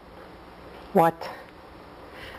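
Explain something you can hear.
A middle-aged man speaks briefly.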